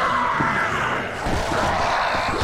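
Heavy blows thud in quick succession.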